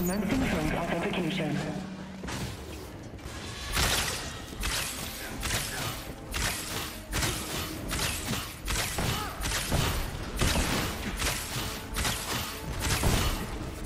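Bow shots and energy blasts fire in quick bursts.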